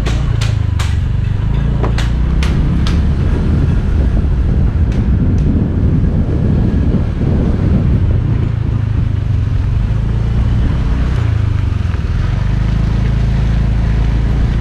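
Wind rumbles loudly against a microphone outdoors.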